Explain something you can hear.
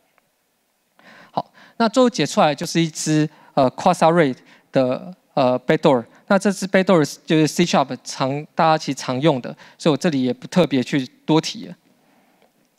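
A man speaks into a microphone in a large hall, explaining steadily.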